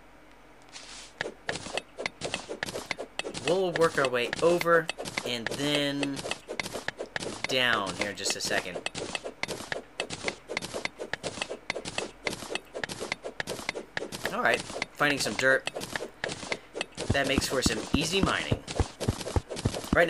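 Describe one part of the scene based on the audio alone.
A pickaxe chips at stone in quick, repeated clicks.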